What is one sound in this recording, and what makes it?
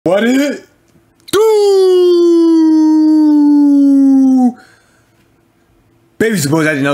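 A young man shouts and sings out excitedly, close to a microphone.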